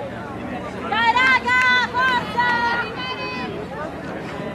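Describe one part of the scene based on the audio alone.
Young women cheer and shout loudly nearby outdoors.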